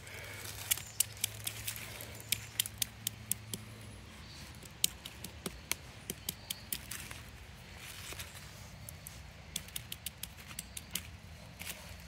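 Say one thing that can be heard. A clay pestle taps and grinds in a clay bowl.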